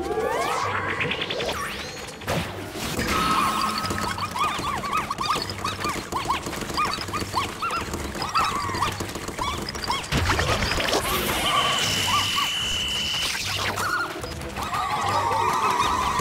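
Small game creatures chirp and squeak in quick high bursts.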